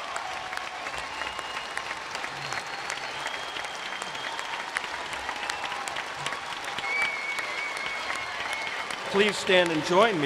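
A large crowd applauds and cheers in a big echoing hall.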